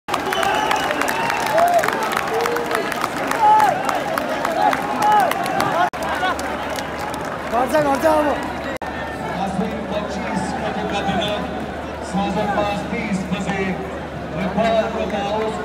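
A large crowd cheers and shouts in an open stadium.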